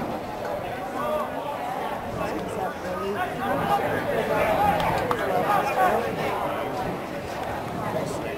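Young players cheer together in a huddle.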